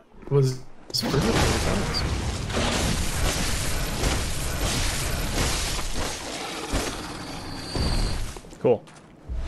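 A monster snarls and thrashes with heavy crashing blows.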